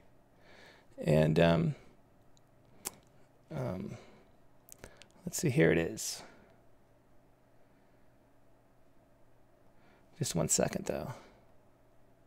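A man speaks calmly and briefly into a close microphone, with pauses.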